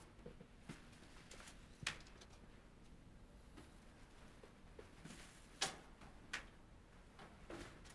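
Footsteps walk along a quiet hallway.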